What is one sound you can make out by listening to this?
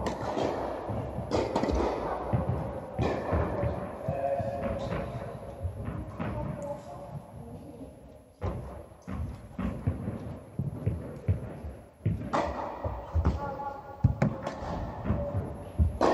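Tennis balls bounce on the court.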